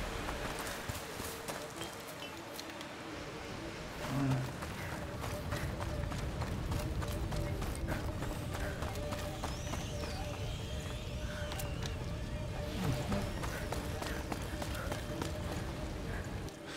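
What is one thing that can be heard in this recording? Footsteps crunch over rubble and gravel.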